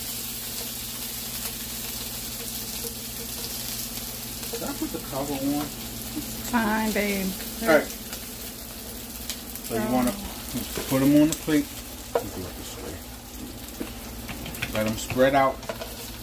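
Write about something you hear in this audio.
A spatula scrapes and clinks against a frying pan.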